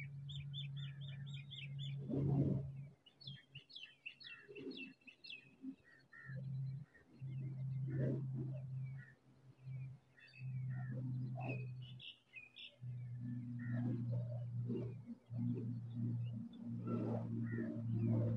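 A nestling songbird chirps.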